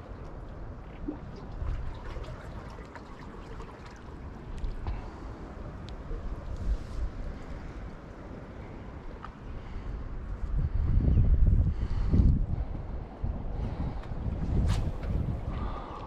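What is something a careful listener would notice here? Wind blows and rumbles across the microphone outdoors, gusting harder for a few seconds.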